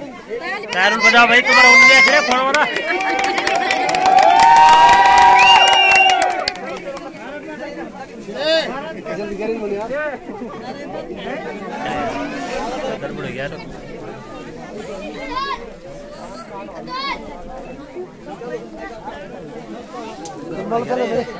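A crowd of men and women chatters close by.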